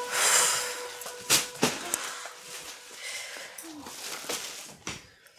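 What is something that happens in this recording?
Plastic shopping bags rustle and crinkle.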